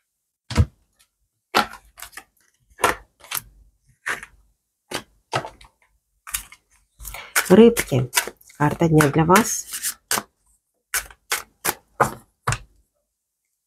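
Playing cards slide and tap on a cloth-covered table.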